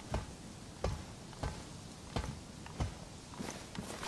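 Boots clank on metal ladder rungs in slow steps.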